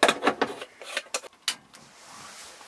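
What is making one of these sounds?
Metal parts of a coffee pot scrape and click as they are screwed together.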